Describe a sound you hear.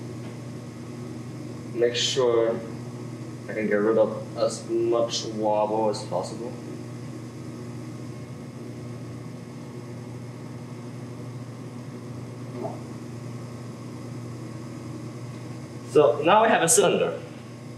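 A potter's wheel hums steadily.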